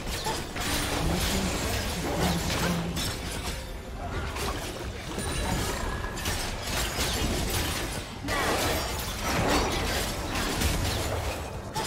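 Video game spell effects whoosh, crackle and explode in a fast fight.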